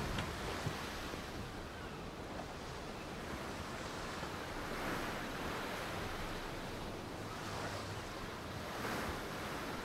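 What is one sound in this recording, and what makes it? Waves wash and lap gently against a shore.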